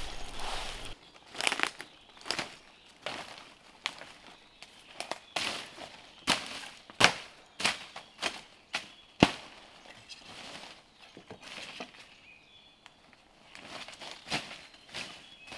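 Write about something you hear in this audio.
Footsteps crunch and twigs snap in dry undergrowth.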